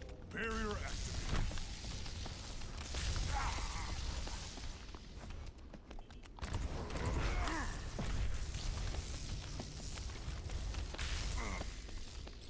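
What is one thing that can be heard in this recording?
An electric weapon crackles and zaps in bursts.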